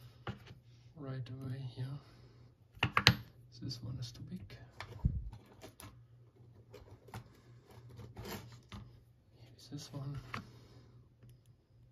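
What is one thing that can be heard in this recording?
Small metal lock parts click and clink.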